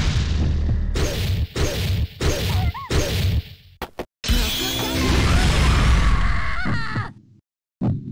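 Sharp punches and kicks smack in quick hits.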